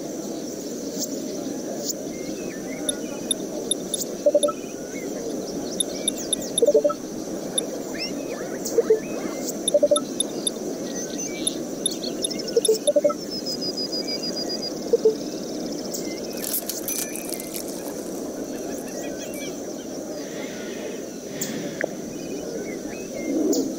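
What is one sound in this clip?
Electronic game sound effects chirp and beep now and then.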